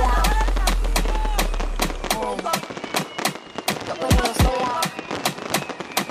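Fireworks bang in a rapid, steady string of sharp blasts.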